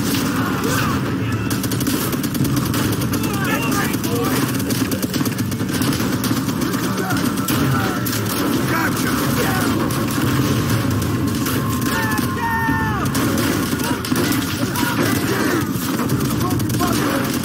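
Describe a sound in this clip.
Rapid gunfire rattles all around.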